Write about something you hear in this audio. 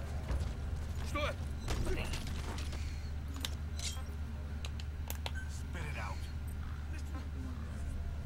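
Bodies scuffle and grapple in a short struggle.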